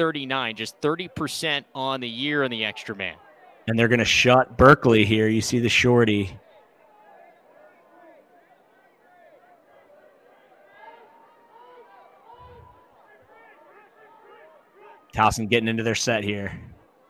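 A crowd murmurs and calls out faintly in the distance.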